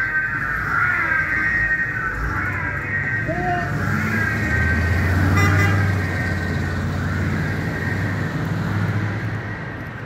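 A car engine rumbles as the car drives away.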